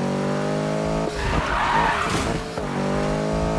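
Tyres screech as a car slides on wet asphalt.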